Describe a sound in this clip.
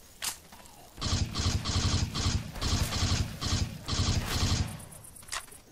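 An automatic rifle fires loud, rapid bursts.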